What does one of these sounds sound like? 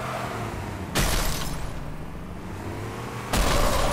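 A vehicle crashes with loud bangs.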